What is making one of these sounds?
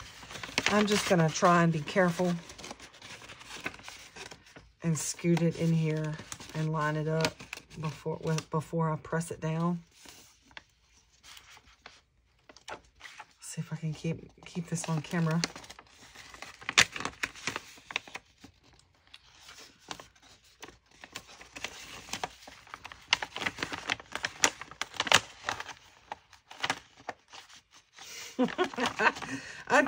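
Paper rustles and crinkles as it is folded and handled.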